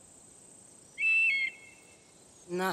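A hawk gives a sharp, high cry.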